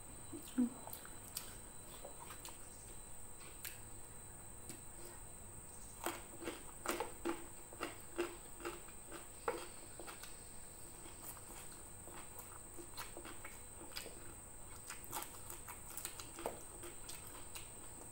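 A woman's fingers click and rustle against food on a plate.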